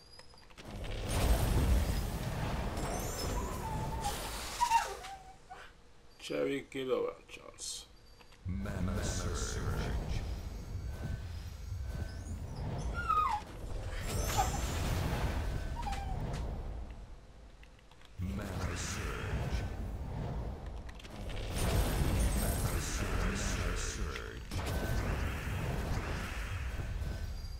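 Magical bursts and chimes ring out as gems shatter.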